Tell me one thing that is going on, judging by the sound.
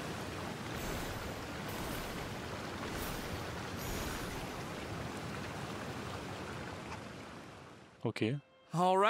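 A waterfall pours and splashes steadily.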